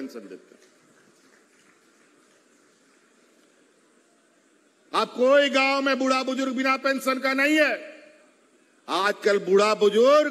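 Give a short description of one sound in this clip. A man speaks forcefully into a microphone over loudspeakers, with long pauses.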